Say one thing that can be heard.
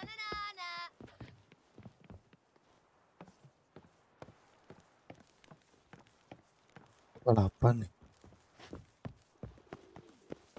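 Footsteps thud on wooden boards and stone at a steady walking pace.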